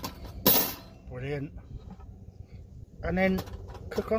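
A metal grate clatters onto a metal frame.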